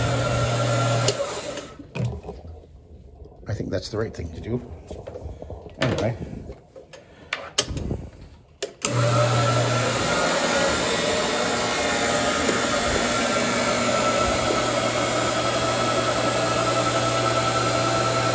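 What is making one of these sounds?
A floor scrubbing machine's motor whirs loudly and steadily.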